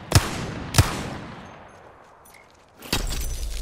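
A gun fires two loud shots that echo and fade.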